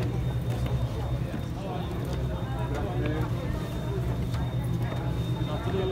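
Footsteps thump on wooden stairs.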